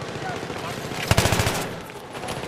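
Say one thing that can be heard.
An assault rifle fires a short burst.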